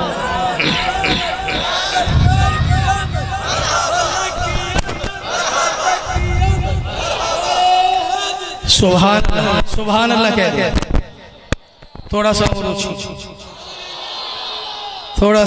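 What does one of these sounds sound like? A crowd of men shouts and cheers together.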